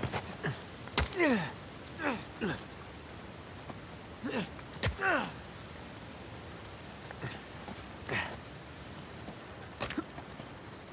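Hands grip and slap against rock.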